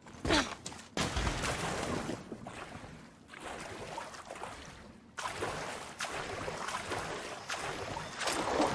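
Water splashes and swirls while someone swims.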